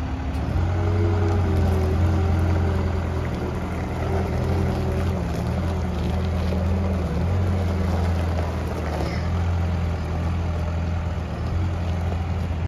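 A diesel engine rumbles steadily as a telehandler drives away.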